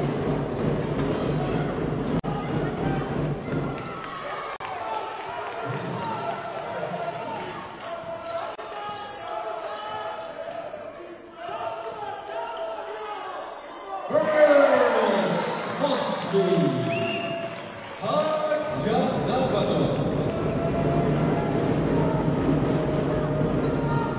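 A small crowd murmurs and cheers in a large echoing hall.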